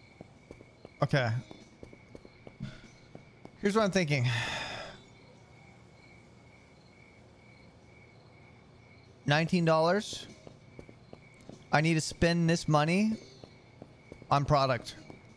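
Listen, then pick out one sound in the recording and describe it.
A young man speaks into a close microphone in short, lively bursts.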